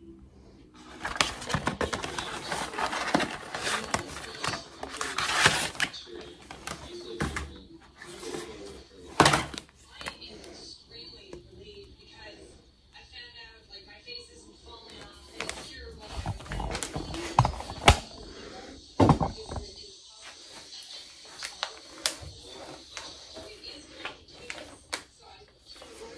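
A plastic packet crinkles and rustles in someone's hands.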